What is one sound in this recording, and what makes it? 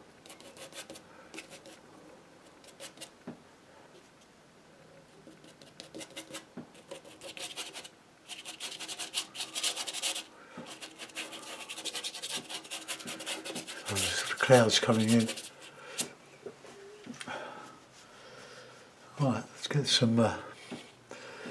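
A brush scrubs and dabs against canvas in short strokes.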